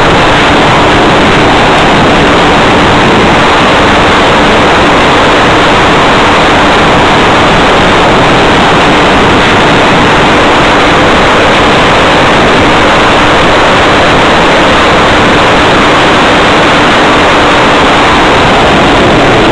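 A small electric motor hums steadily.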